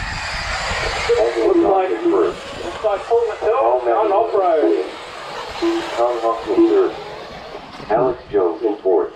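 Small electric model cars whine and buzz as they race around a dirt track.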